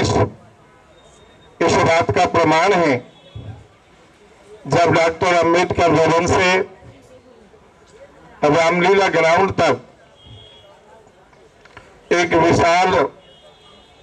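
An elderly man speaks forcefully into a microphone over a loudspeaker, in short bursts with pauses.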